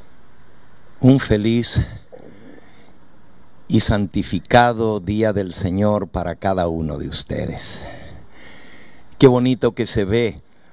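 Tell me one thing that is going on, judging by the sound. An elderly man preaches with feeling into a microphone, amplified through loudspeakers.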